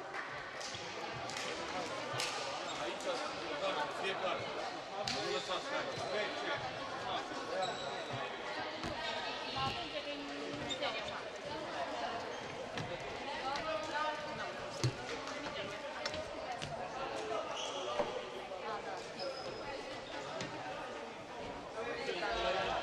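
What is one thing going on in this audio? A crowd of players and spectators chatters and calls out in a large echoing hall.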